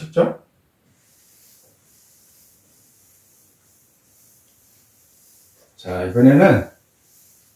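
A felt eraser rubs softly across a chalkboard.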